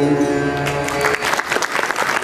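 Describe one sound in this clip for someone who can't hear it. A sustained harmonium chord fades out.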